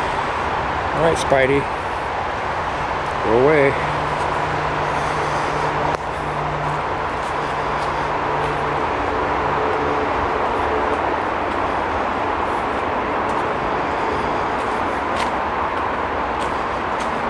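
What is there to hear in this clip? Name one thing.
Footsteps crunch on dry leaves along a dirt path.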